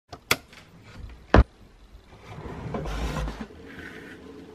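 A wooden drawer knocks and slides open.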